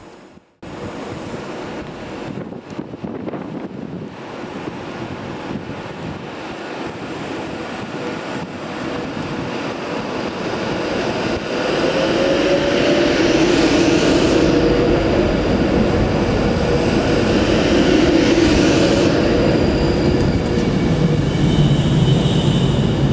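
An electric train approaches and rumbles past close by, growing louder.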